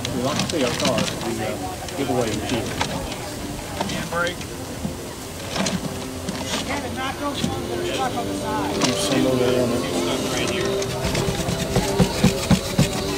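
Paper tickets tumble and rustle inside a spinning plastic drum.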